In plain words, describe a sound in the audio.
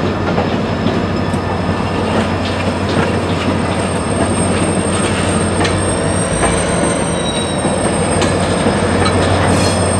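A diesel locomotive engine drones steadily as it passes close by.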